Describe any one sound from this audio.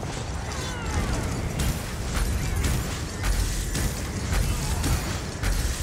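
Magic spells hum and burst in quick bursts.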